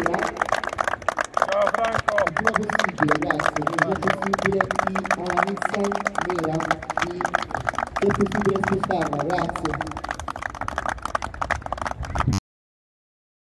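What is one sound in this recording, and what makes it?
A crowd of people applaud with steady clapping outdoors.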